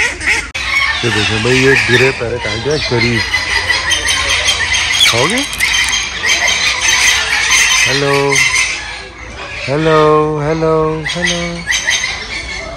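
A parrot makes short, whistling calls close by.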